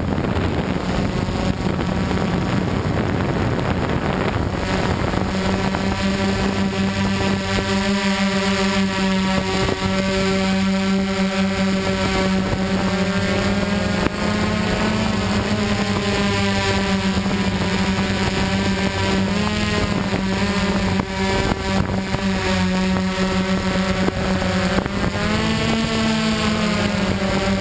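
Small propeller motors hum and whine close by, shifting in pitch now and then.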